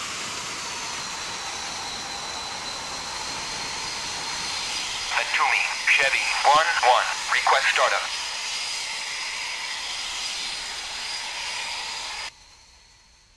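A jet engine whines and roars steadily.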